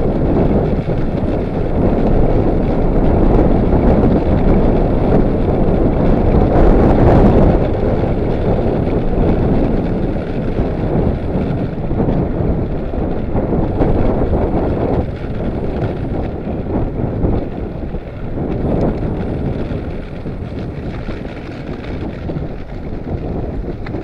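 Bicycle tyres roll over a paved lane.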